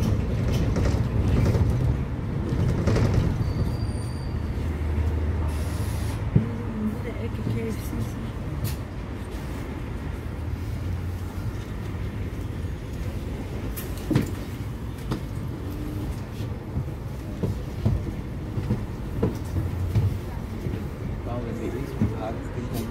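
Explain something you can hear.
A bus engine rumbles steadily from close by.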